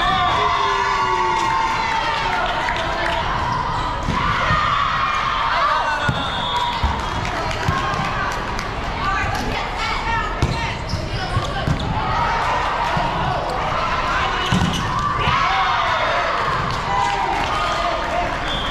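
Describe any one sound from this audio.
Young women shout and call out to one another across the hall.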